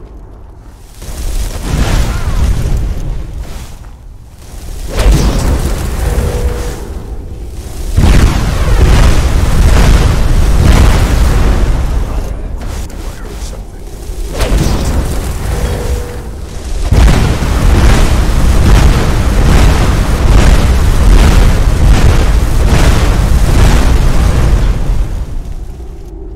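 Magic spells crackle and roar in loud bursts.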